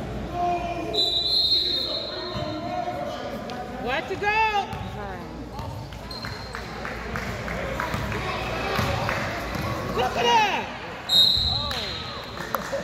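A referee blows a shrill whistle.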